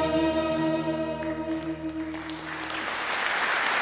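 A string orchestra and singers hold a final chord that ends.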